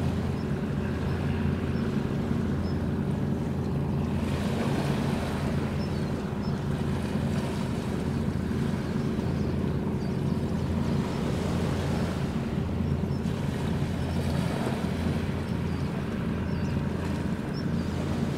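A large ship's engines hum with a steady low drone as it passes by.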